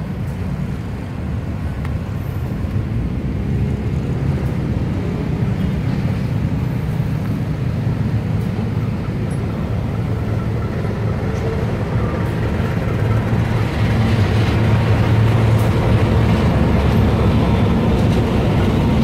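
A diesel locomotive engine rumbles and drones, growing louder as it approaches.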